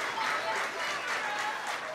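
A choir of young voices sings in a large hall.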